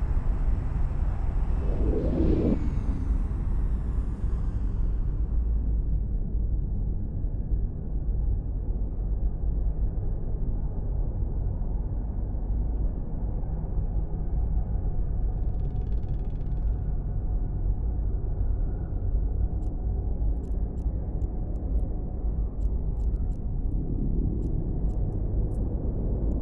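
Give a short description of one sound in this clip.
A spaceship's engine drones with a deep, steady rumble.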